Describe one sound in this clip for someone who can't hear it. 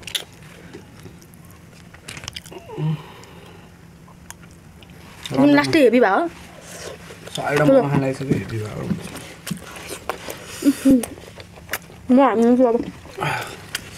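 A young man and a young woman chew food with wet, smacking sounds close to a microphone.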